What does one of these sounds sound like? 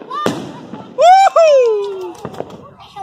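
A firework rocket whistles shrilly and falls in pitch.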